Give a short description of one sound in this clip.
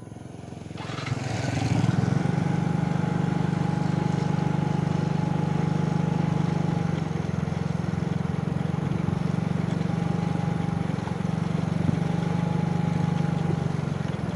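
A motorcycle engine hums steadily as the motorcycle passes close by and rides off down the road.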